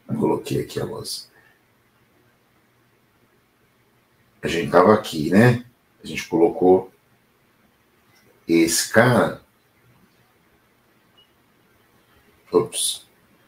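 A man speaks calmly, close to a microphone, in short phrases with pauses.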